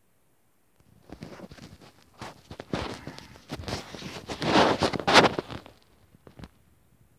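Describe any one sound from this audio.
Fingers rub and handle a small plastic model with a soft rustle.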